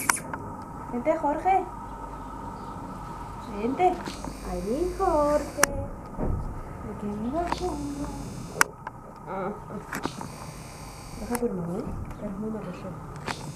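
A woman talks softly and affectionately, close by.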